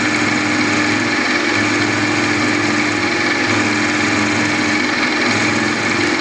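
A small cutter grinds against metal.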